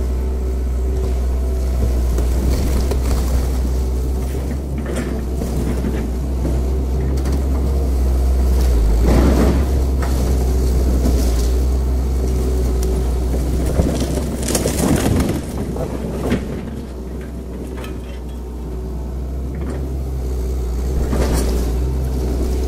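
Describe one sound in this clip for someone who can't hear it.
An excavator engine rumbles steadily close by.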